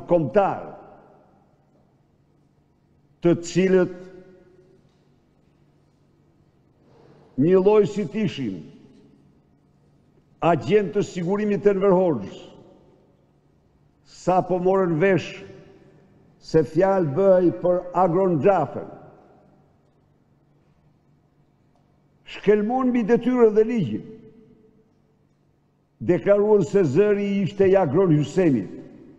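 An elderly man speaks forcefully into a microphone in bursts, with pauses between phrases, in a reverberant hall.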